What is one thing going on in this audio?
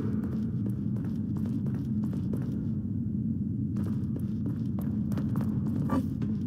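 Footsteps thud quickly on stone.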